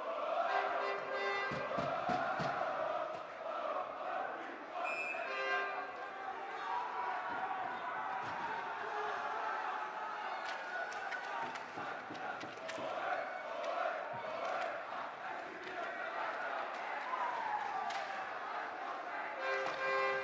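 A crowd murmurs in an echoing rink.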